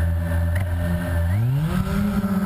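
A drone's motors wind down in pitch.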